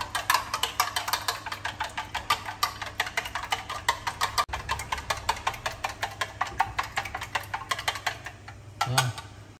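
Chopsticks rapidly beat eggs against a metal container.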